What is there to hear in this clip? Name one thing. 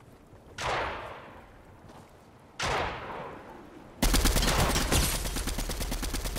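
A video game rifle fires several shots.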